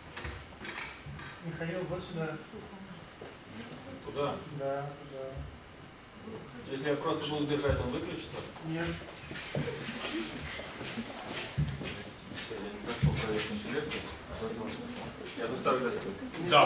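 A man speaks into a microphone over loudspeakers in an echoing room.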